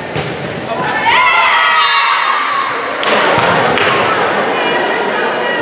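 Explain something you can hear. Young women shout excitedly as they celebrate together.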